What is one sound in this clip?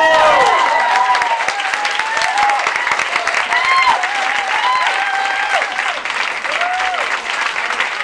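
Several young women cheer and whoop among the audience.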